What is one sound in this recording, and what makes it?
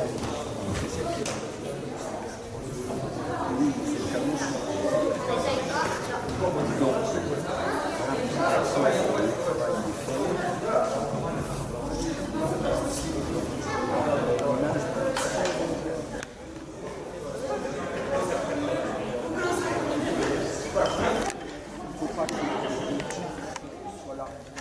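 A crowd of children and adults chatter in a large echoing hall.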